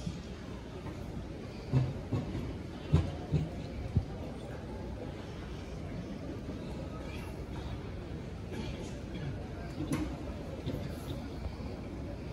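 A large stadium crowd stays hushed, with faint murmurs and rustles outdoors.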